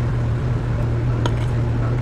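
Coffee pours into a glass of milk.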